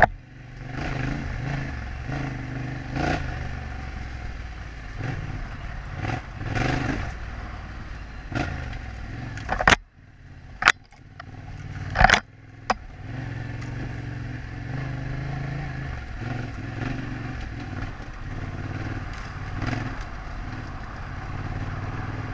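A motorcycle engine rumbles steadily, rising and falling with the throttle.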